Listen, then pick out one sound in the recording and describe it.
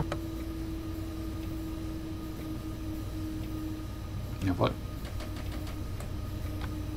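A train's electric motor hums with a steady tone.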